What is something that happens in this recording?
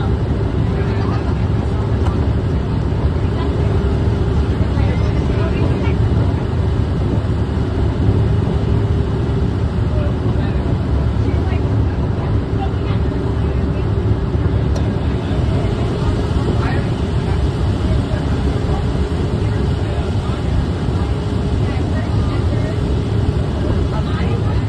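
Jet engines roar steadily with a loud rushing of air, heard from inside a cockpit.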